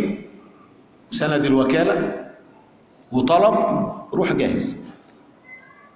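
A middle-aged man speaks with emphasis through a microphone in a large echoing hall.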